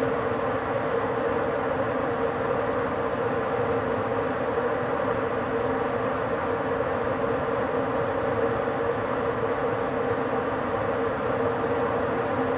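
A train rolls steadily along the rails with a constant rumble.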